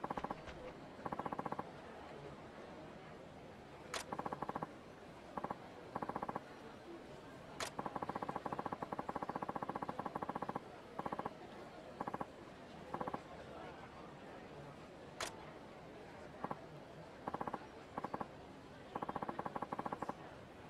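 Rapid electronic blips chatter in short bursts.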